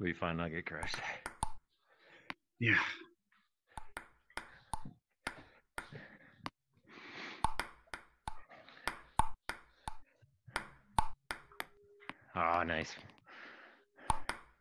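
A ping pong ball clicks back and forth between paddles and a table in a quick rally.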